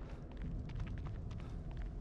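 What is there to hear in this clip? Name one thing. Leaves rustle as a man brushes through bushes.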